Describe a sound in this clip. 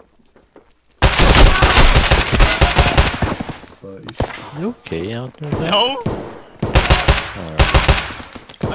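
Gunshots ring out in rapid, loud bursts.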